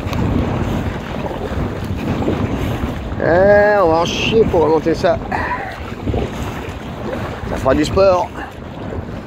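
Small waves lap against the side of an inflatable kayak.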